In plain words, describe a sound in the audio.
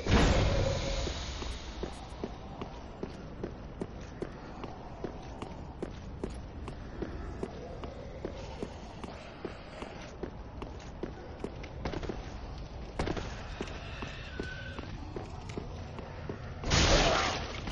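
Armored footsteps clank steadily on stone.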